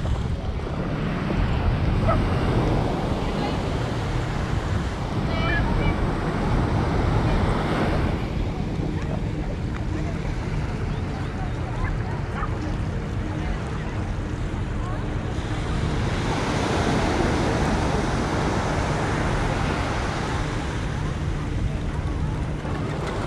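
Wind blows hard, rumbling and buffeting.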